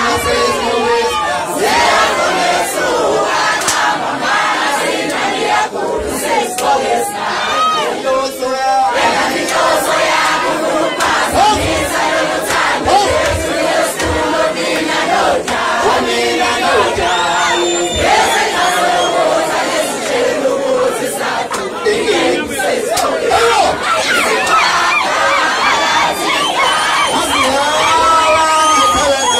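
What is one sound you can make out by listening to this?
A young man sings and shouts into a microphone over a loudspeaker.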